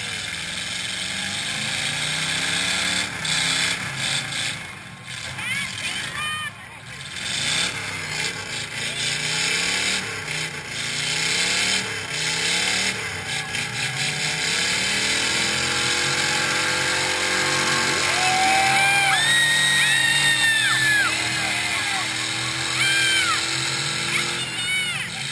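A car engine revs hard and roars as its tyres spin.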